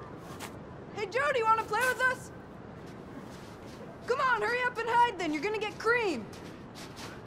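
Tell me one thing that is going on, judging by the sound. A young boy shouts loudly outdoors.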